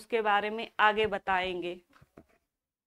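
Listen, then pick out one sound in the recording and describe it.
A young woman speaks clearly and with animation into a close microphone.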